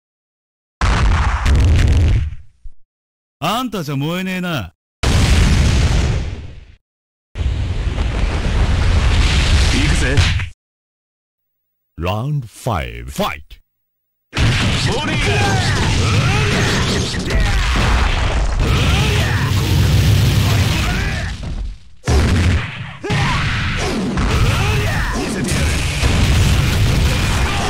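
Energy blasts whoosh and crackle in a rapid fight.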